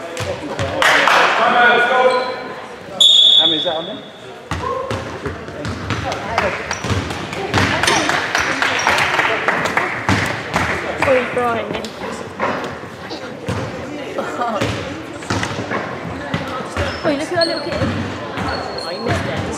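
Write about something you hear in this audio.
Young men shout and call out, echoing in a large hall.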